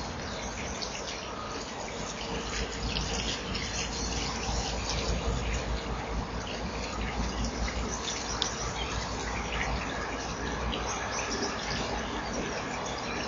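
A small bird knocks a fish against a wooden branch.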